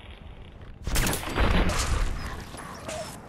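A gunshot fires and echoes.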